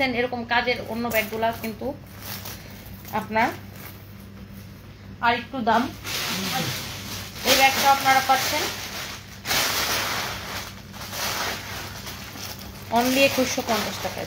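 Plastic packaging crinkles and rustles in a young woman's hands.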